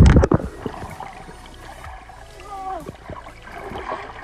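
A swimmer's arm strokes softly through the water.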